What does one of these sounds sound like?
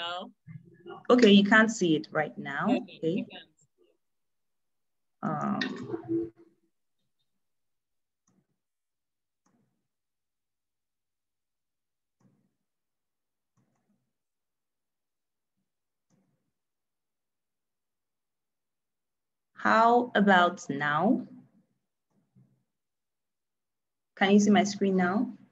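Another woman speaks calmly through an online call, in short bursts with pauses.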